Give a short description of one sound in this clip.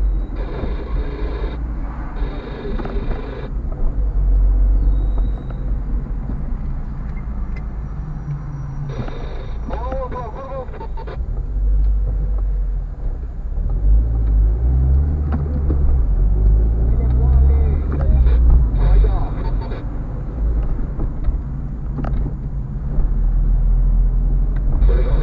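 A car engine hums steadily from inside the car while driving.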